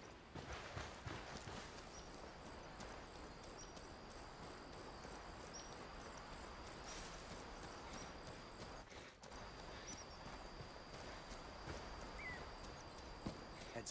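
Footsteps crunch steadily over a forest floor.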